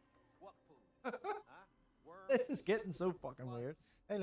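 A young man asks questions with animation.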